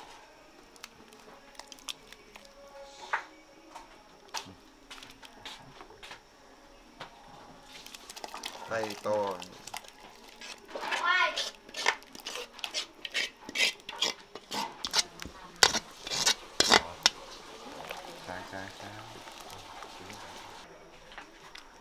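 A metal ladle clinks against a pot as soup is stirred.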